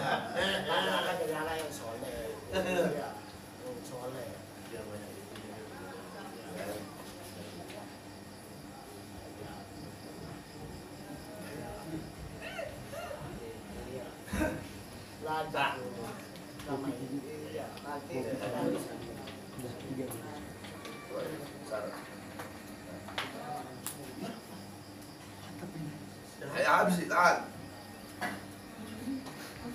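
Men talk in low voices in a room with a slight echo.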